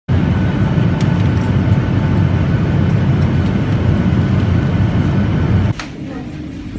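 Aircraft engines roar steadily inside a cabin.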